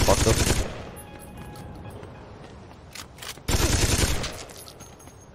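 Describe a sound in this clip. Gunshots bang loudly.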